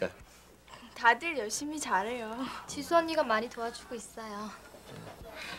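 A young woman talks calmly nearby.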